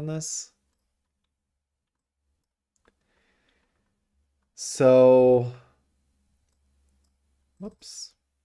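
A young man speaks in short bursts close to a microphone, with long pauses.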